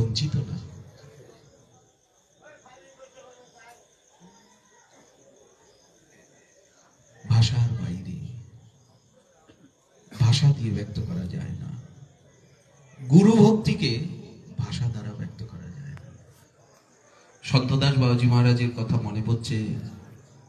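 A man speaks and chants in bursts through a microphone and loudspeaker, with pauses between phrases.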